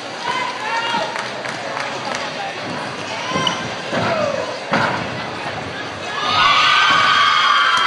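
A gymnast's feet thump on a springy tumbling track.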